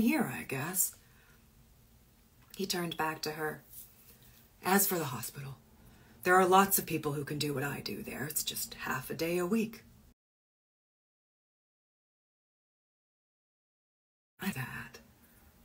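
A young woman reads aloud expressively, close to a microphone.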